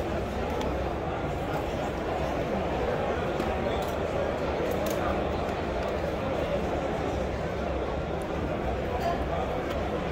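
A plastic toy car clicks softly as it is set back into a tray.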